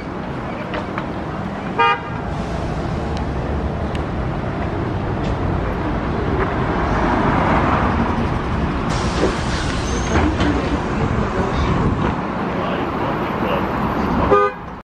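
Traffic hums steadily outdoors.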